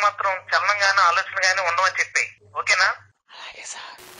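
A young man talks on a phone with animation.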